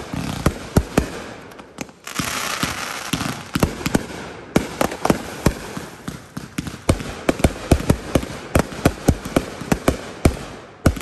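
Fireworks burst overhead with rapid loud bangs.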